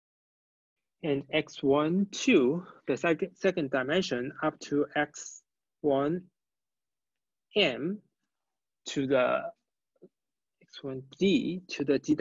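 A young man speaks calmly into a close microphone, explaining.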